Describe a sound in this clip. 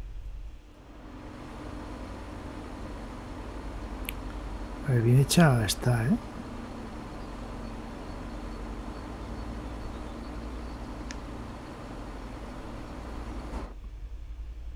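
A diesel train rumbles along the rails.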